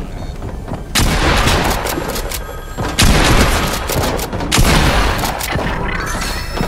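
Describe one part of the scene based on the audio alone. Shotgun blasts boom nearby.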